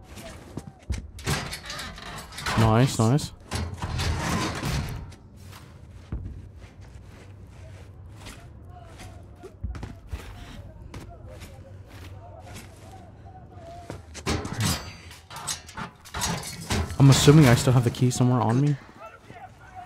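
A metal grate creaks and clanks as it is pulled open.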